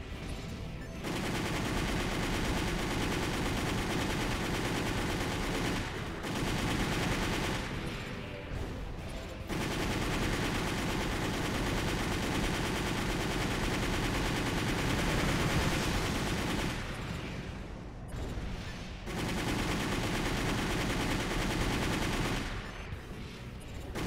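Jet thrusters roar loudly in bursts.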